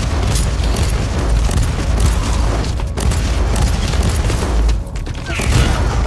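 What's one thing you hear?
Gunfire and blasts crackle rapidly in a fierce battle.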